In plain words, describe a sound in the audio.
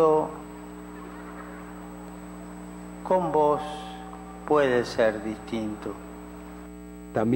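A middle-aged man speaks up loudly nearby.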